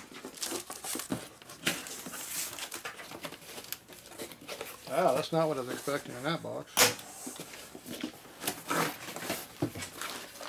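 Cardboard flaps rustle and thump as a box is handled.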